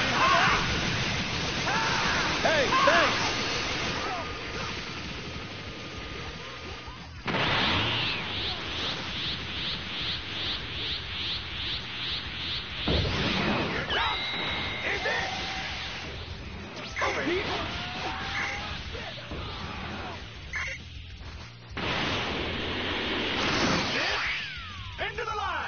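Energy blasts roar and crackle in bursts.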